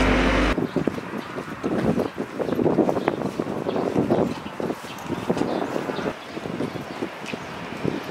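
Footsteps scuff along a paved street.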